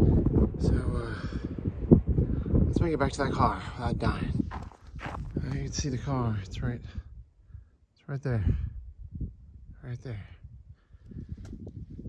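A young man talks calmly, close to the microphone.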